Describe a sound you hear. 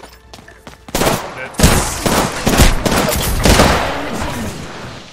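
A gun fires in loud, rapid bursts.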